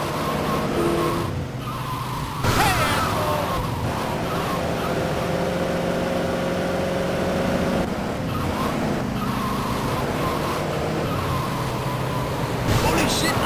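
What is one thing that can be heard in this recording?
A pickup truck engine hums steadily as it drives.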